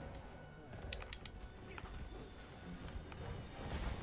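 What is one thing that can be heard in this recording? Metal weapon blows clang against a creature.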